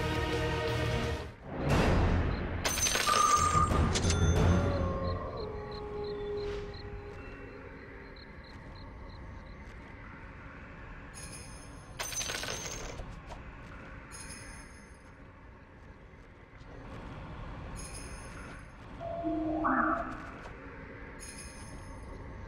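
Game sound effects chime, whoosh and clatter.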